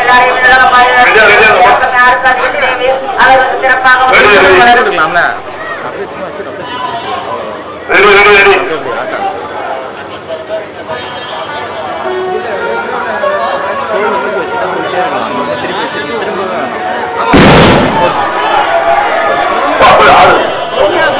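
A crowd of people talks and shouts outdoors.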